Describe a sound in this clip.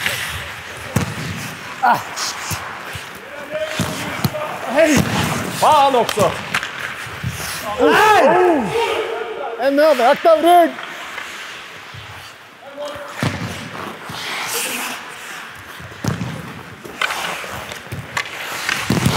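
Hockey sticks slap a puck with sharp clacks.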